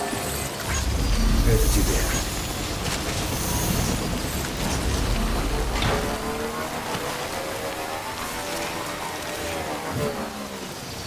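A motorbike engine rumbles over rough ground.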